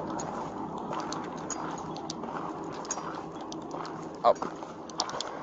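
Footsteps crunch on dry gravel and dirt.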